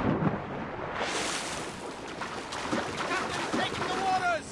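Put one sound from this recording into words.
Water sloshes and splashes as a man swims.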